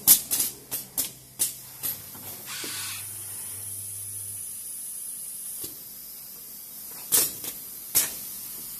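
Industrial robot arms whir as their servo motors move.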